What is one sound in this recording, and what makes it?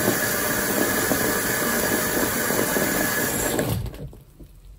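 A wet sponge squishes wetly.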